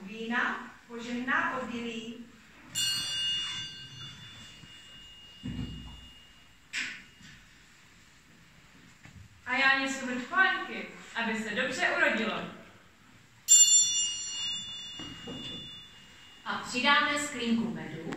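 A young woman speaks loudly and expressively.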